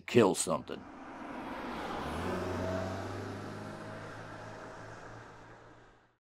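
A car drives away and fades into the distance.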